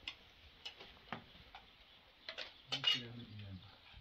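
Spoons clink against dishes during a meal.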